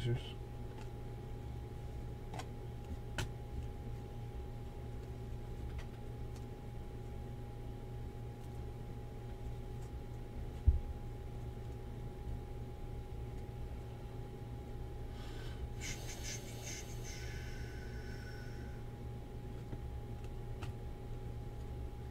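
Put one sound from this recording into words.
Trading cards rustle and slide against each other as hands shuffle them.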